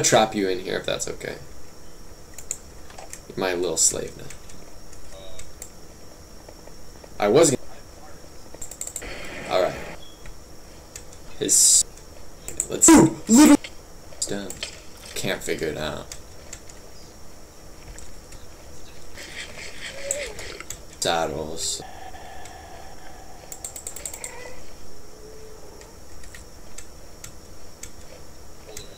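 A mouse clicks.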